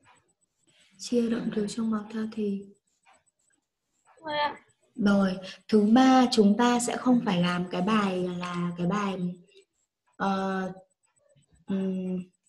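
A young woman speaks clearly over an online call, explaining at a steady teaching pace.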